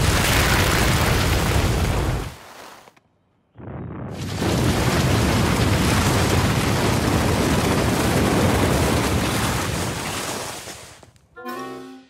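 Plows scrape and rush through deep snow.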